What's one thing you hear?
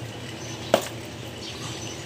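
Wet fish slide and slap softly against each other.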